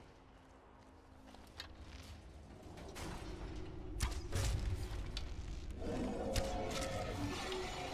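A bowstring twangs as an arrow is loosed, echoing in a large cave.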